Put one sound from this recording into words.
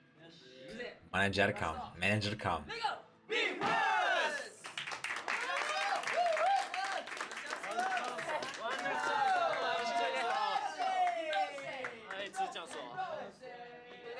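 A group of young men shout and cheer excitedly, heard through a recording.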